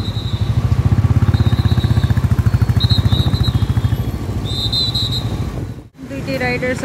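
A motorcycle engine putters close by.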